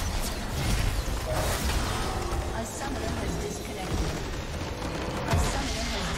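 Game spell effects crackle and whoosh in quick bursts.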